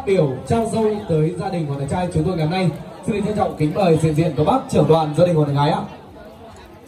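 A man sings loudly through a loudspeaker, echoing in a large hall.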